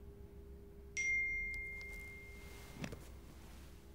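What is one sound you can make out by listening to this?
A phone gives a short notification chime.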